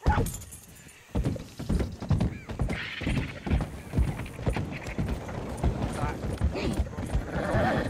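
A horse's hooves clatter on wooden planks.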